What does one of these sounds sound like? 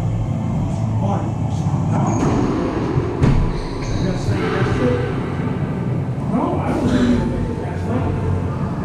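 A man calls out in a large echoing hall.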